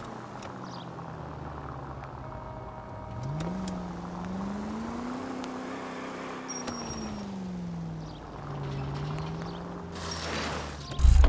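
A car engine hums and its pitch rises and falls as it drives.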